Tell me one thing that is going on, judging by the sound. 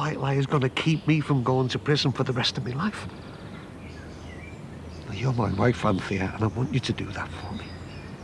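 A middle-aged man speaks quietly and earnestly up close.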